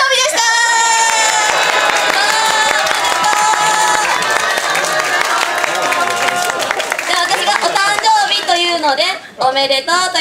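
A group of young women sing together through microphones.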